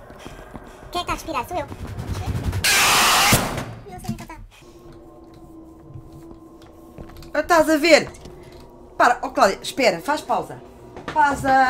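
A young woman talks and exclaims with animation into a close microphone.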